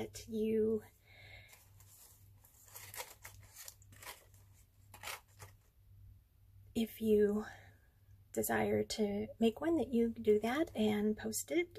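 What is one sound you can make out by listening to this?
Hands shift a paper box with soft rustling and tapping.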